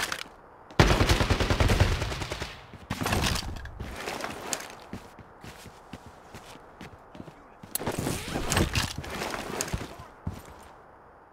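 A rifle clicks and rattles as it is handled and loaded.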